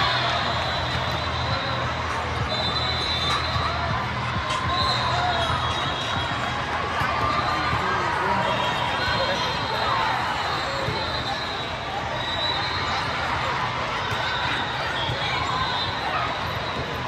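Young women call out to each other on a court.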